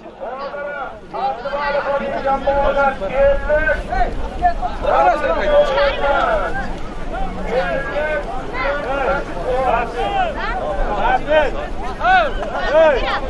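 A large crowd of men shouts and calls out outdoors.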